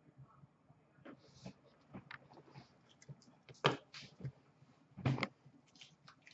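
Small card packs tap and knock lightly against a counter.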